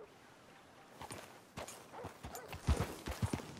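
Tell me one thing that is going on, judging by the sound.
A horse's hooves thud on a dirt road.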